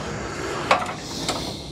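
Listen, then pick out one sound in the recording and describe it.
An aerosol spray can hisses briefly.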